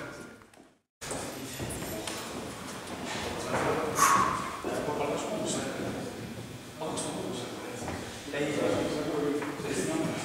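A man grunts and strains under a heavy load.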